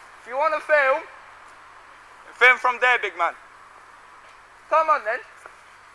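A young man talks loudly in short bursts close by.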